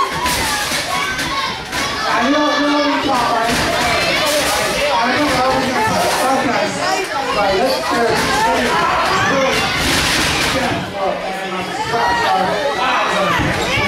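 A woman close by shouts and cheers.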